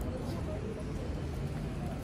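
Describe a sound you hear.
Two women walk by with footsteps on paving.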